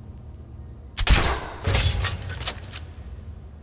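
A crossbow fires with a sharp twang and thud.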